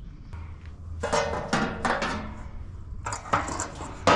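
A brush scrubs a metal pan with a harsh scraping sound.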